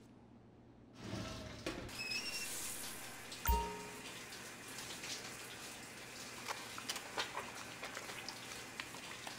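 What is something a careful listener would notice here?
A shower runs with a steady hiss of water.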